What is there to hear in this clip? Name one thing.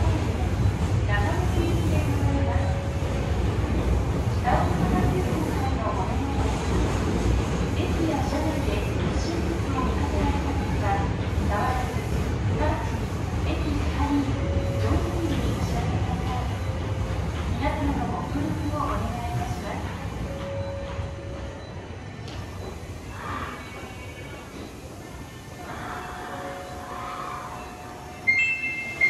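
A train rumbles along the tracks, slowing as it comes to a stop.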